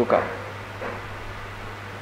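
A woman speaks quietly into microphones.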